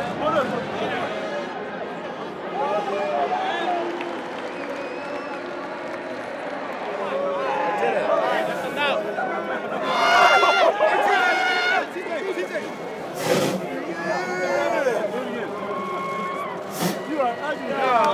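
A large crowd cheers and roars in a big stadium.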